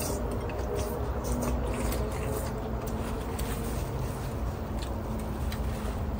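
People slurp soup noisily.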